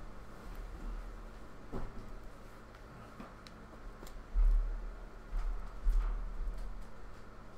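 A chair creaks and thumps nearby.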